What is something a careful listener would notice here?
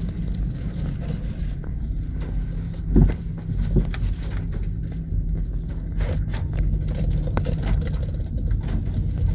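Raindrops tap on the car's windscreen.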